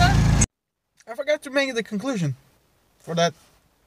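A young man talks calmly and close up inside a car.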